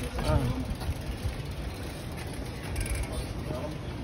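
Bicycle tyres roll over a rough concrete path.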